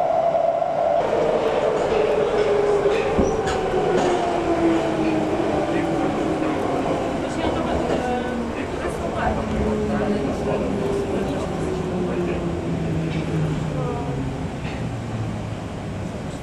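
A train's motor whines, falling slowly in pitch as the train slows down.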